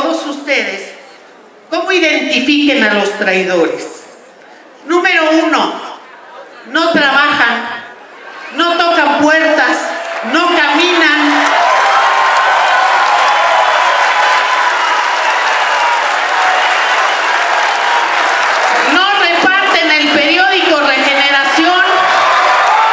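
A middle-aged woman speaks forcefully into a microphone, with pauses between phrases.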